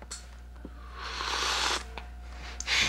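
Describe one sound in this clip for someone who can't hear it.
A man slurps a drink noisily.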